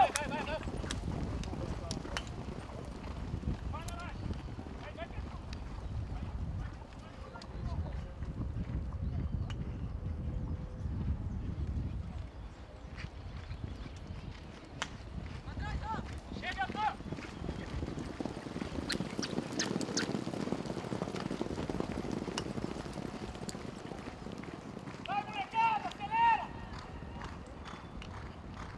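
Horses gallop across turf with heavy, thudding hoofbeats.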